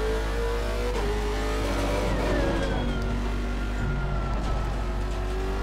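A racing car engine roars loudly, its pitch dropping as the car slows.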